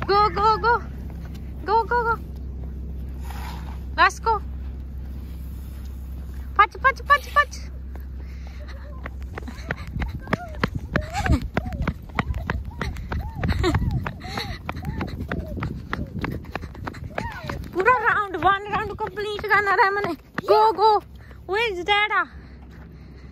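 A young child squeals and babbles close by.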